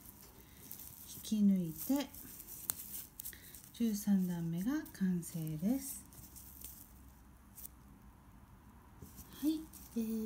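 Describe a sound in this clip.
Plastic yarn rustles and crinkles softly.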